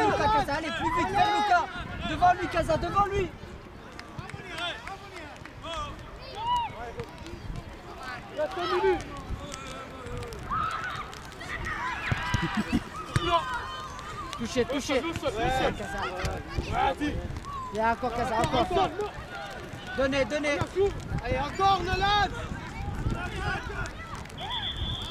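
Children shout and call out to each other across an open field outdoors.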